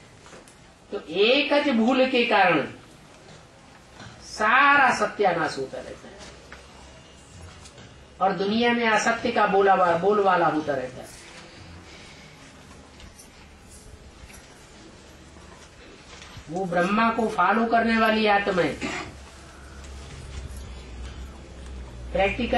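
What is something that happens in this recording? An elderly man speaks calmly into a microphone, in bursts with pauses.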